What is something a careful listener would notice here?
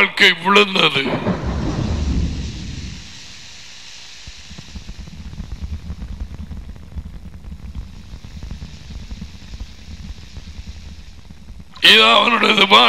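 Floodwater rushes and churns.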